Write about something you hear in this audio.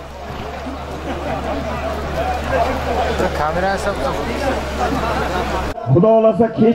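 A crowd murmurs and shouts outdoors in the distance.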